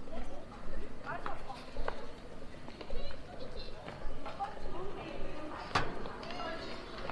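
Young women chat quietly as they walk past.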